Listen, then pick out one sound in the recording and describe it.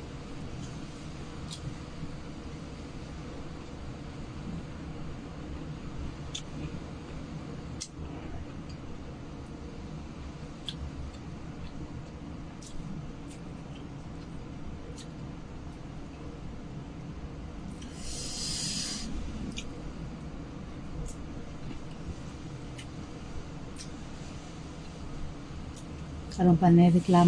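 A woman crunches and peels food, with soft clicks and crackles.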